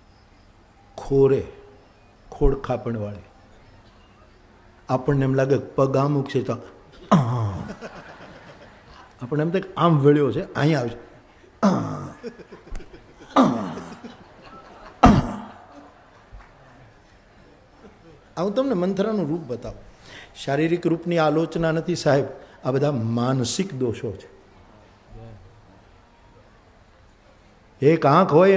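An elderly man speaks with animation into a microphone, in short bursts with pauses, heard over a loudspeaker.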